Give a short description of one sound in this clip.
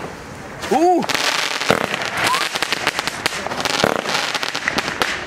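Fireworks crackle and pop overhead.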